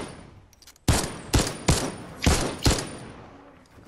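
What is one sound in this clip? Gunshots fire in quick, loud bursts.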